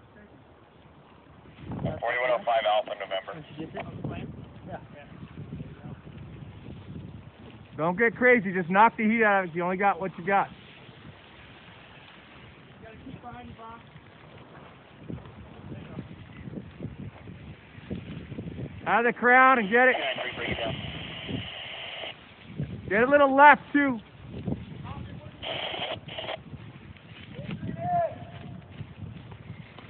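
A forest fire roars and crackles close by.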